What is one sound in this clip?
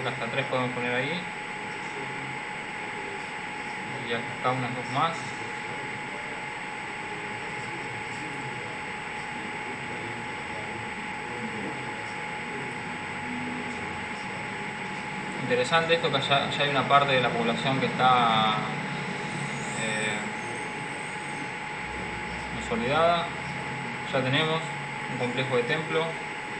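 A young man talks calmly in short bursts, close to a microphone.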